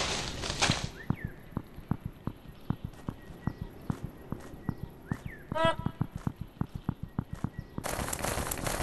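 Quick light footsteps patter on the ground.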